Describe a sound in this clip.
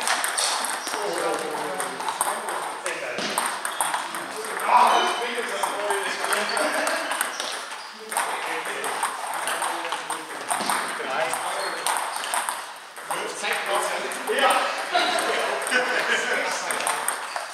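A table tennis ball clicks off paddles in an echoing hall.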